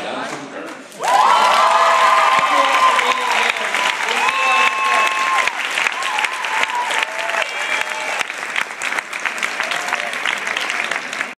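A large crowd cheers and whoops.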